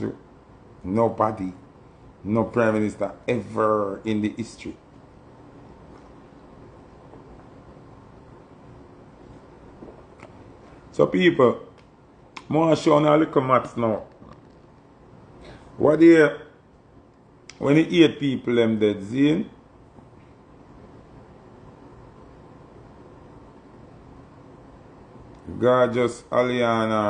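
A man talks casually and close to a microphone, in short bursts with pauses.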